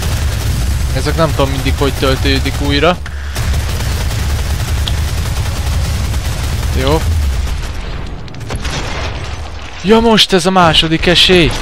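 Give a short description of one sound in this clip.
A monster roars and growls up close.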